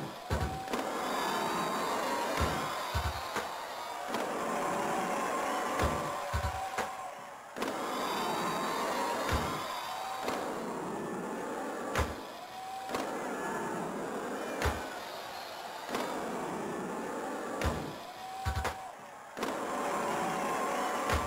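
Game music plays with a steady beat.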